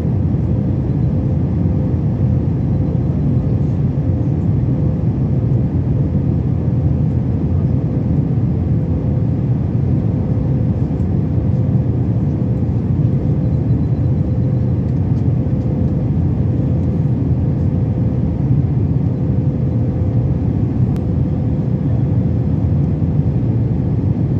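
Jet engines roar in a steady, deep drone inside an airliner cabin in flight.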